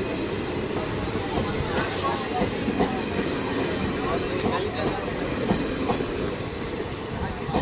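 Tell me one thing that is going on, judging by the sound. A train rumbles steadily in the distance.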